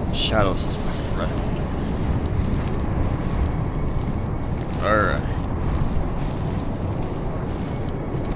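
Footsteps crunch and rustle through tall grass.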